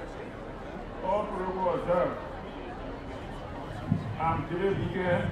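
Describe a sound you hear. An older man speaks slowly into a microphone over loudspeakers.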